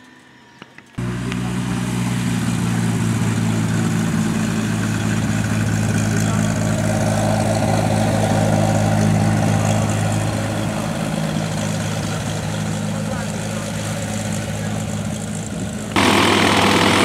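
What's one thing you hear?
A small propeller plane's engine drones steadily close by.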